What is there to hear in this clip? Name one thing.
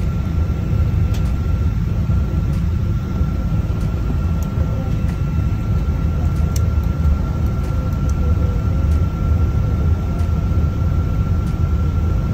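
Jet engines roar loudly and steadily, heard from inside an airliner.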